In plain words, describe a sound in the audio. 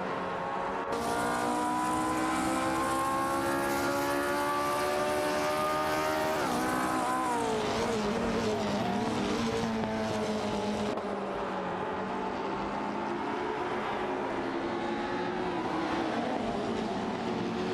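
Other racing car engines drone nearby.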